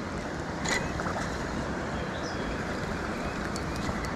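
A fishing reel clicks as its handle is cranked.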